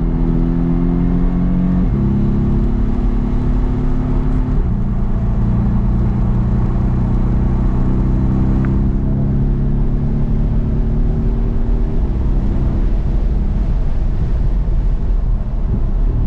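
Windscreen wipers swish back and forth.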